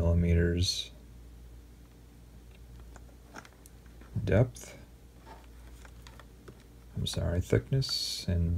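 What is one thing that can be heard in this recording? Small plastic parts click and rattle as they are handled.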